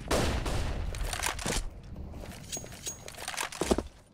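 Footsteps tap quickly on hard ground.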